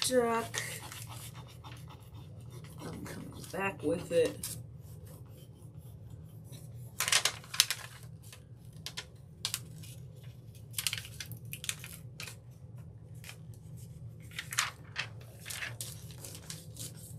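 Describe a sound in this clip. A thin plastic sheet crinkles and rustles in short bursts.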